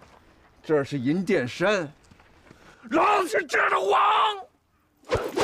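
A middle-aged man shouts threateningly up close.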